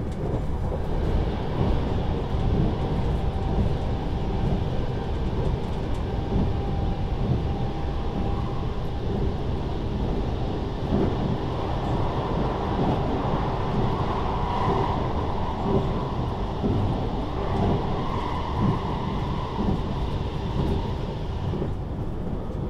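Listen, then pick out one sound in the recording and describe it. A train's roar grows louder and echoes while it passes through a tunnel.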